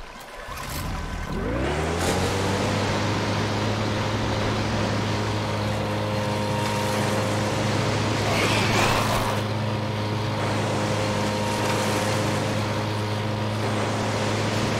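A boat's outboard motor starts up and drones steadily.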